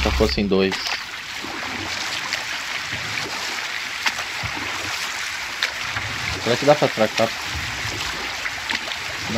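Water laps and splashes around a boat as it is rowed along.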